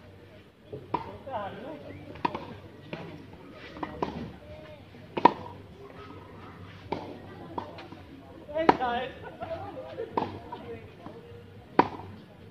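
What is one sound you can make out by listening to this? A racket strikes a tennis ball with a crisp pop.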